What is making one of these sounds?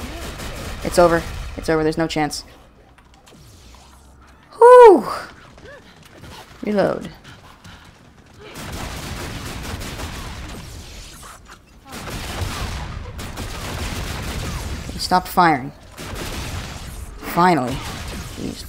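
Explosions boom in a game.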